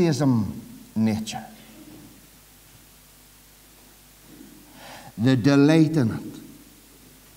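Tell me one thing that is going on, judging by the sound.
A middle-aged man preaches forcefully through a microphone, in bursts with long pauses.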